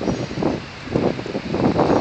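A truck drives by on the street.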